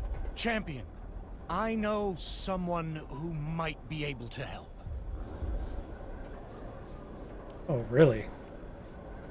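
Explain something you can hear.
A middle-aged man speaks with animation, close to a microphone.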